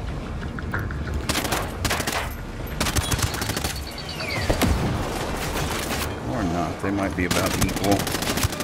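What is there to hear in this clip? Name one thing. Rifle gunfire crackles in rapid bursts.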